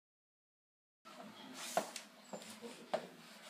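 Footsteps knock on a hard floor nearby.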